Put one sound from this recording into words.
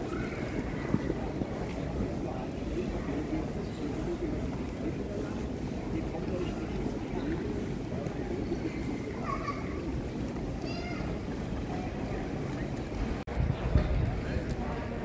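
A large echoing hall hums with the murmur of a crowd.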